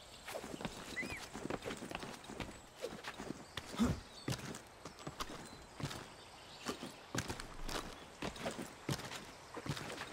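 Bark and branches knock and scrape as someone climbs a tree.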